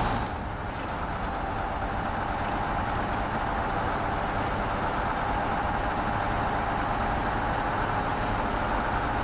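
Tyres crunch over snow and rocks.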